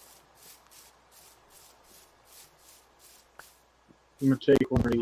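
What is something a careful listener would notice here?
Footsteps pad steadily across grass.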